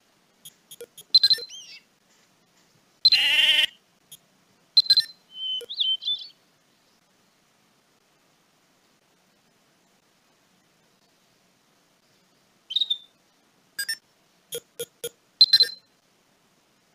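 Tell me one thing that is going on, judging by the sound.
Short game menu clicks and chimes sound now and then.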